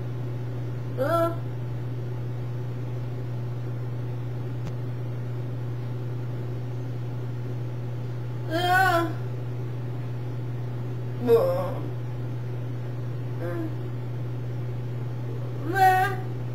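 A middle-aged woman makes short voiced sounds close by.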